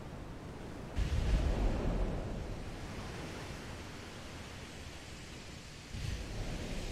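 Shells explode in the water with deep booms.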